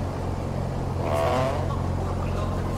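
A heavy wooden lid creaks as it is lifted open.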